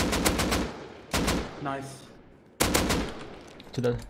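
A rifle fires several loud shots in quick bursts.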